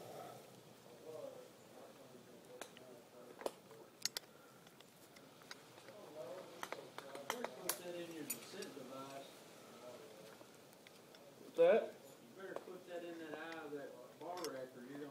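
A man talks nearby.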